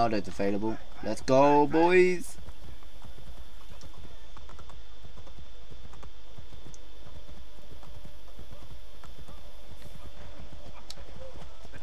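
A horse's hooves clop on a dirt road.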